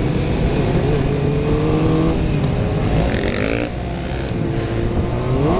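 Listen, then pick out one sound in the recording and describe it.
A motorcycle engine hums and revs up close.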